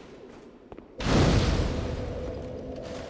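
A fire ignites with a loud whoosh.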